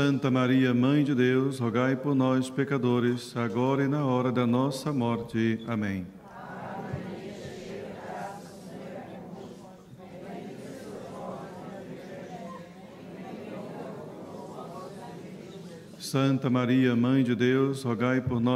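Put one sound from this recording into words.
A man chants in a steady sung voice through a microphone in an echoing hall.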